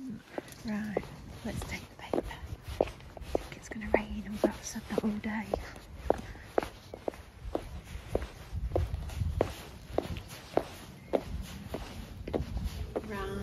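Footsteps tread at a steady walking pace.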